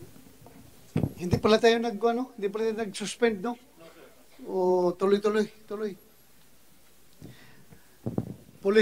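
A middle-aged man speaks firmly into a microphone.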